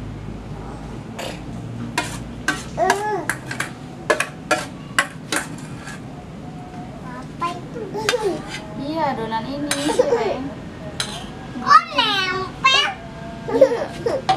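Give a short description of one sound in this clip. A metal spoon clinks and scrapes against a metal pot.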